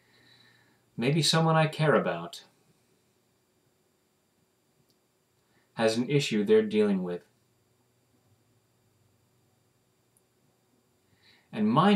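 A middle-aged man speaks calmly into a nearby microphone, in short bursts.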